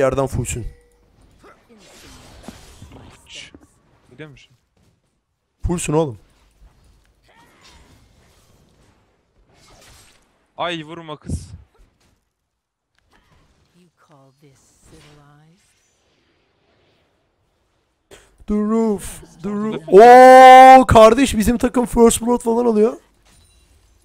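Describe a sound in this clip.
A young man talks into a microphone in short bursts, at times excitedly.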